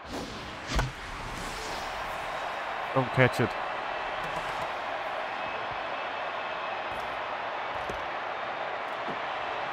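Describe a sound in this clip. A crowd cheers steadily.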